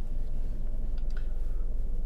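A car drives slowly past.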